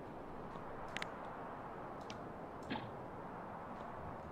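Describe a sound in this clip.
Short clicks sound as buildings are placed.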